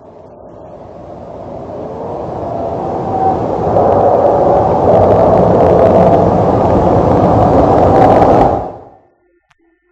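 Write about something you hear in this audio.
A jet engine roars, growing louder as a jet races down a runway, then cuts off.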